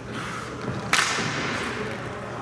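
A hockey stick slaps a puck.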